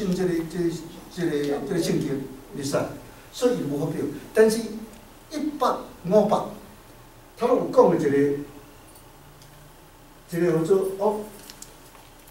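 An elderly man lectures calmly through a microphone.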